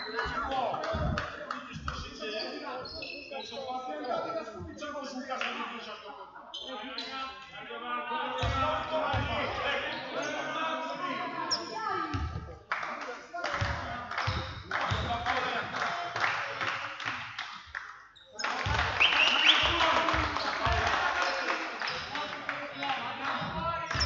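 A crowd chatters and cheers in an echoing hall.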